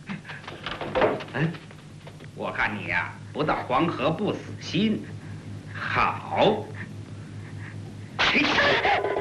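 A man speaks mockingly up close.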